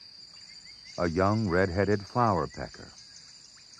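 A nestling bird calls loudly and shrilly, begging for food.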